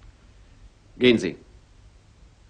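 A woman speaks a short, sharp phrase up close.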